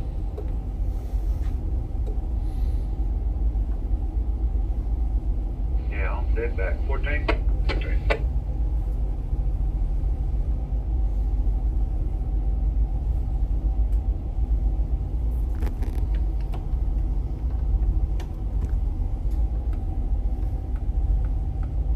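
A boat engine rumbles low and steady.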